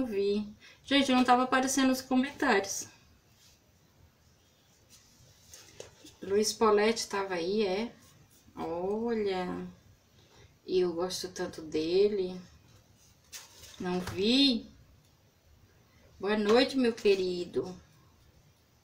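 A woman speaks calmly close by, in short bursts with pauses.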